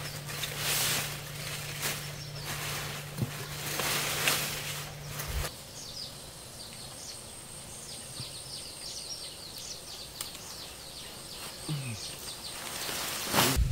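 Leaves rustle and crackle as they are handled.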